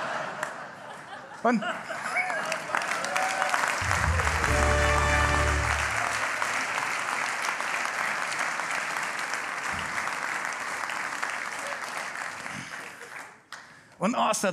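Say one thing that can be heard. A large audience claps and cheers in a big hall.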